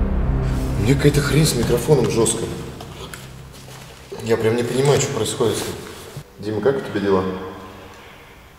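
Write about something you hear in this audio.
A man talks with animation.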